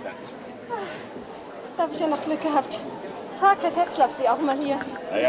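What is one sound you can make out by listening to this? A young woman speaks cheerfully nearby.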